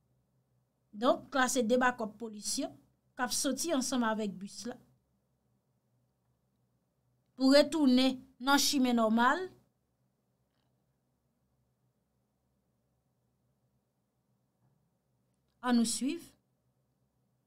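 A young woman speaks calmly and close into a microphone, in short bursts with pauses.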